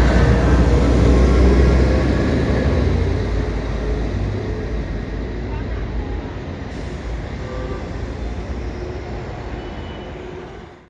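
Traffic hums along a road outdoors.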